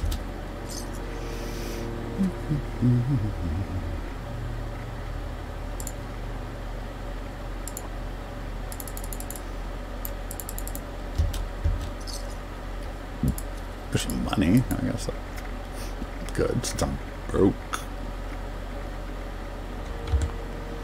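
Soft menu clicks tick as a selection moves through a list.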